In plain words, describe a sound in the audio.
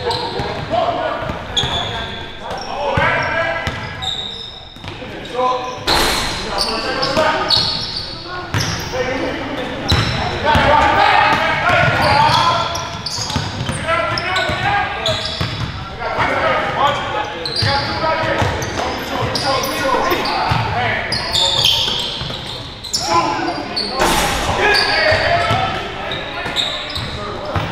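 Men shout and call out to each other across the gym.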